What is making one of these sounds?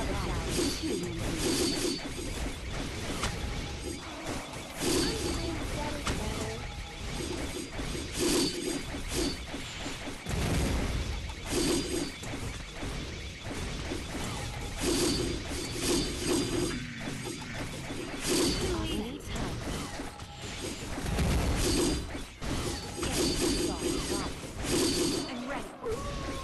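Game battle sounds of magic blasts and explosions clash without a break.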